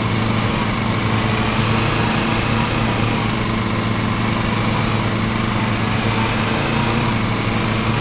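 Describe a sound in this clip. A riding lawn mower engine drones steadily.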